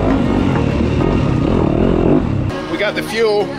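A dirt bike engine revs close by.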